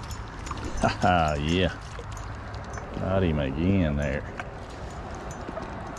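A fish splashes and thrashes at the water's surface.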